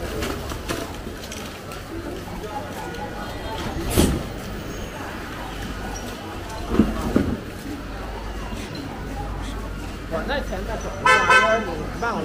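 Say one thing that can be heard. A busy street hums with distant chatter of passers-by outdoors.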